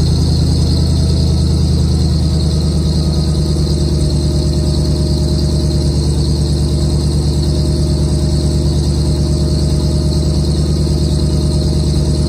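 A machine motor runs with a steady, low, throbbing hum.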